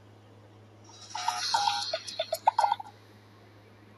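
A short cheerful game jingle plays.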